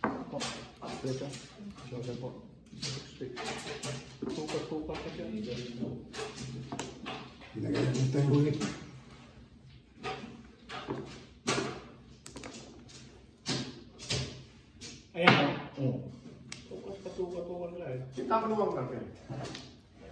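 Mahjong tiles click and clack against each other on a table.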